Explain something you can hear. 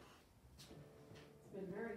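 Footsteps fall on a wooden floor.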